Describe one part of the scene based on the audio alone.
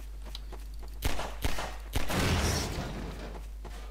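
A pistol fires several sharp shots in an echoing corridor.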